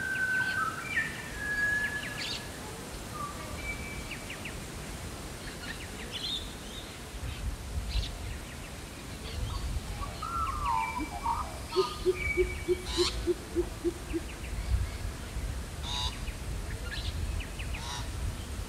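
Several birds chirp and whistle outdoors.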